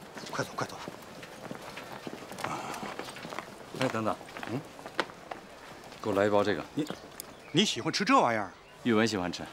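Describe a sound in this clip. An older man speaks urgently, close by.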